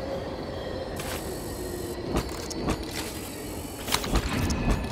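Short electronic chimes and clicks sound as a score tallies up.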